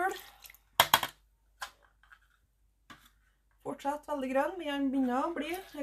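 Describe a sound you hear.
Liquid sloshes in a pot as yarn is stirred.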